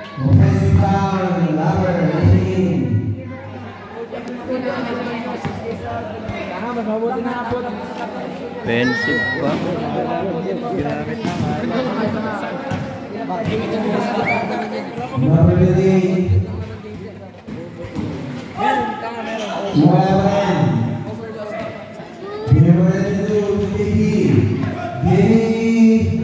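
Men talk and call out nearby.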